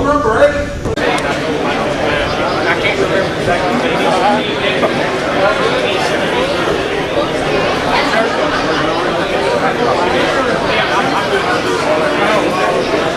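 A large crowd chatters in a big echoing hall.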